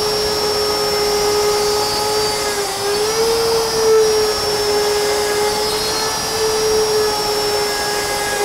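An electric router whines loudly and steadily as it cuts into wood.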